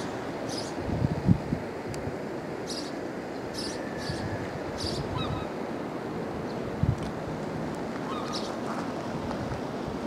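Water laps gently against rocky shore.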